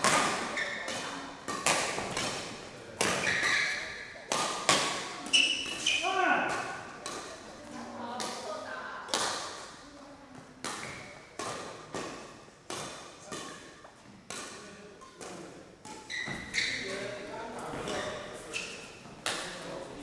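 Shoes squeak sharply on the court floor.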